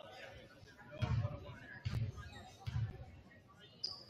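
A basketball bounces on a wooden floor a few times.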